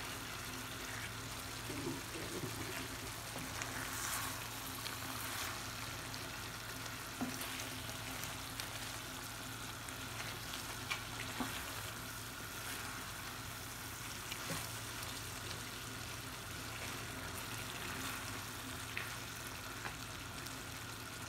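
Food sizzles and bubbles steadily in a pan.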